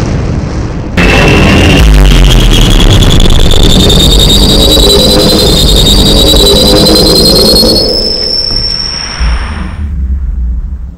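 A stack of loudspeakers blares a loud, harsh tone that slowly rises in pitch.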